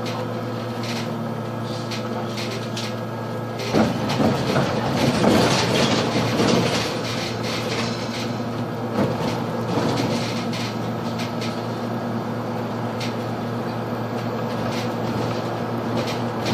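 A bus engine hums steadily from inside the vehicle.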